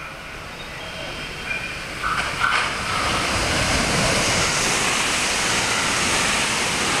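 An electric commuter train approaches and rushes past at speed without stopping.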